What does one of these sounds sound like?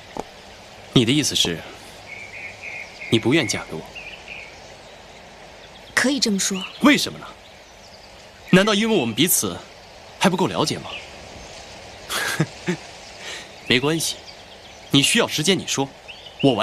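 A young man speaks calmly and closely.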